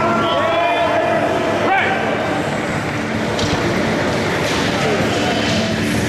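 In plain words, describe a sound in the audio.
Several men shout encouragement loudly.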